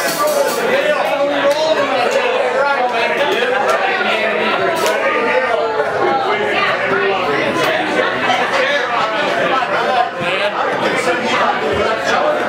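An acoustic guitar strums steadily through a loudspeaker.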